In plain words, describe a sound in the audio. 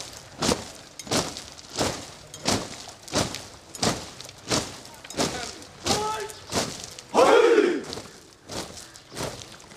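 Boots stamp on gravel in a steady marching rhythm.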